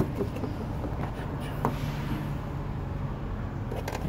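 A car door handle clicks and the door swings open.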